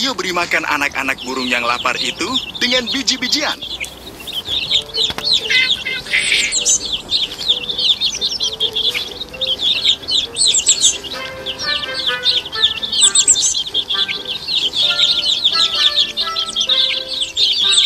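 Baby birds chirp and cheep loudly.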